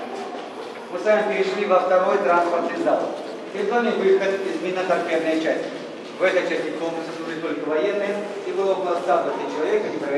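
An older man speaks loudly nearby.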